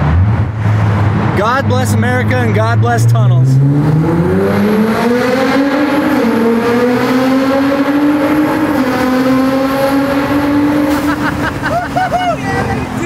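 A car engine revs up loudly and roars as it accelerates, echoing around it.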